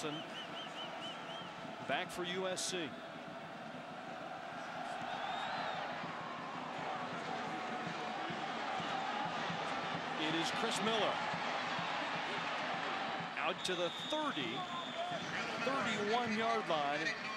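A large stadium crowd cheers and roars, swelling as the play goes on.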